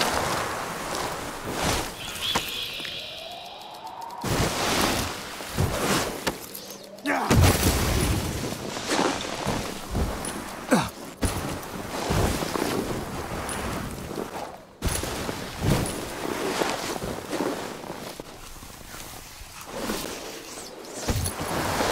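A snowboard carves and hisses through deep powder snow.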